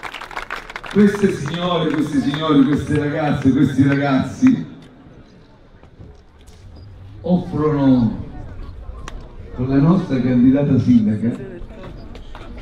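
A man speaks with animation into a microphone over a loudspeaker outdoors.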